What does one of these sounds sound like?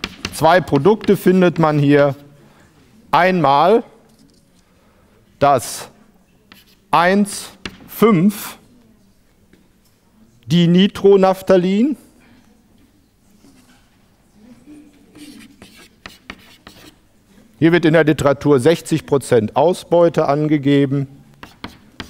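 A man speaks in a lecturing tone in a large echoing room.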